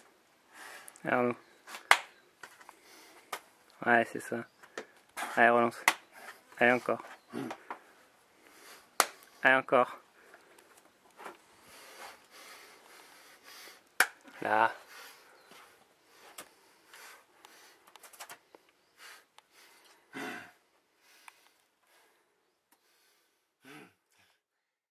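A man grunts and groans with effort, close by.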